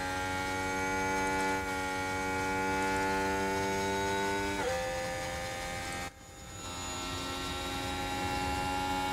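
A racing car engine whines loudly at a steady high pitch, dropping suddenly partway through.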